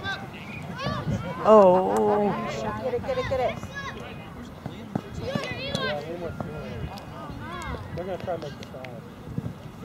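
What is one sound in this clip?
Adult spectators shout and cheer excitedly nearby, outdoors.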